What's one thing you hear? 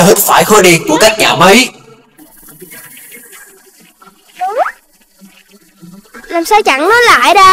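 A child-like cartoon voice speaks with animation, high and squeaky.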